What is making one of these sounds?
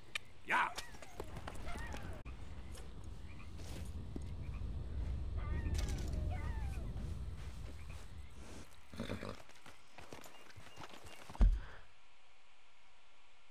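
Horse hooves thud slowly on a dirt trail.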